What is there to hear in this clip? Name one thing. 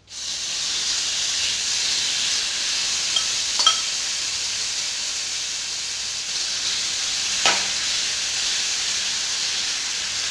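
A metal spoon scrapes against a pan.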